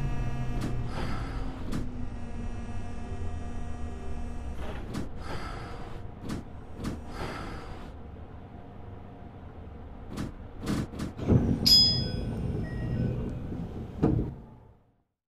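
A train rolls along the tracks with a low motor hum.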